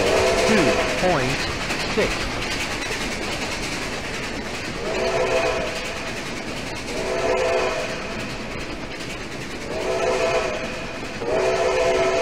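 Train wheels clatter over the rails as carriages roll past.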